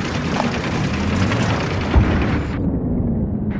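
A tank engine rumbles low nearby.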